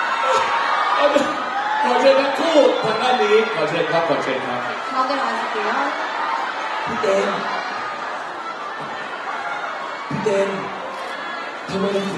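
A man with a microphone talks with animation over loudspeakers.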